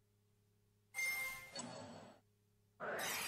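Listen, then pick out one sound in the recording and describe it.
A bright, shimmering game effect sound rings out briefly.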